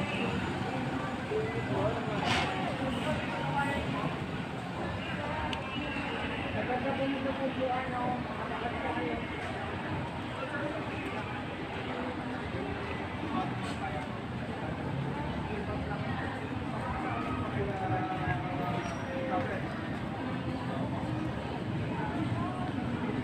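A crowd of men and women chatter outdoors in the background.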